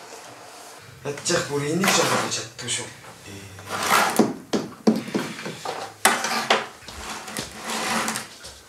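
Young men talk with one another close by.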